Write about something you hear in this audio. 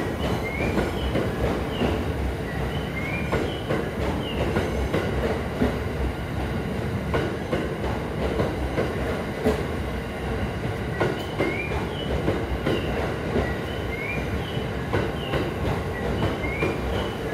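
Train wheels clack over rail joints in a quick rhythm.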